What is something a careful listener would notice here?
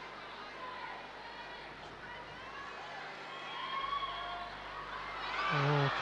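A large crowd murmurs and calls out in a big echoing hall.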